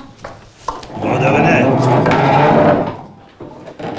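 Several men and women greet one another at once, talking over each other.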